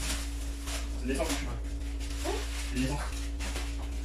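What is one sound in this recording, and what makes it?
Plastic wrapping crinkles and rustles.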